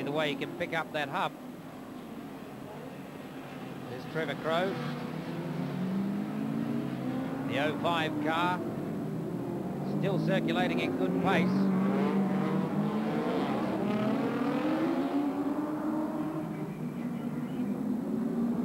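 Race car engines roar and rev as cars speed past.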